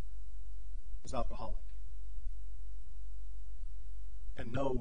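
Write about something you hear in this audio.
A middle-aged man speaks through a microphone in short bursts, with pauses.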